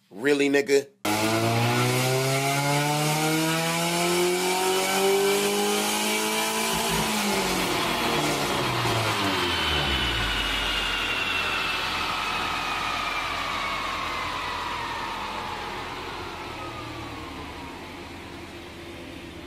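A four-cylinder car engine revs up hard and winds down on a chassis dyno.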